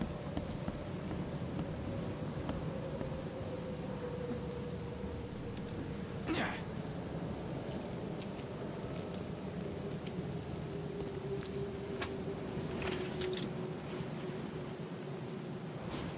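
Footsteps crunch over rubble and broken boards.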